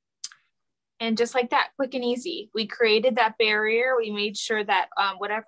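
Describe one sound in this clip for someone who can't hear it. A young woman speaks calmly and clearly through a phone microphone.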